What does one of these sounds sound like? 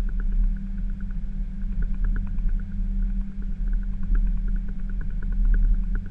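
Aircraft wheels thump and rumble over runway joints.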